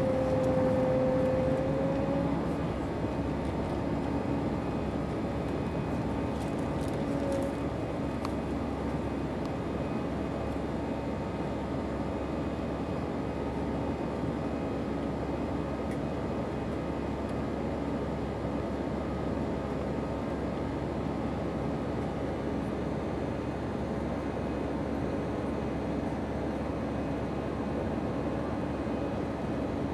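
A jet engine roars steadily close by.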